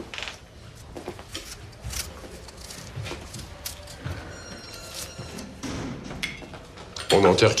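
A knife scrapes as an apple is peeled.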